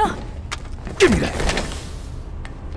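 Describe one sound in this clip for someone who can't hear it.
A young woman cries out while struggling.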